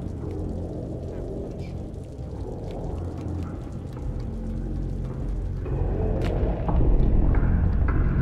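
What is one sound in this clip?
A deep, steady rumble drones and grows louder.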